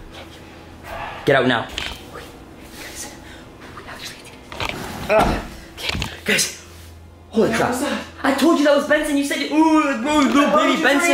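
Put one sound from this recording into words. A young man talks excitedly close by.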